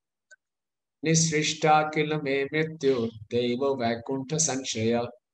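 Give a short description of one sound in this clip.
A man speaks steadily through a close microphone.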